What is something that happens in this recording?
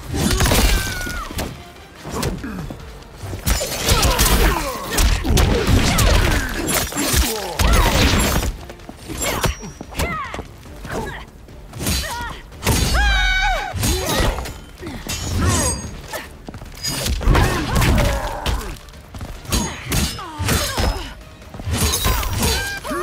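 Heavy blows and punches land with loud thuds and cracks.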